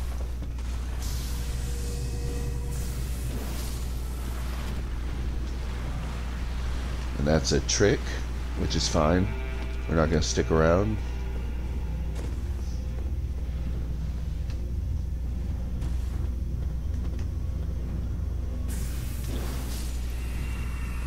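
A magic sword swishes through the air with a shimmering rush.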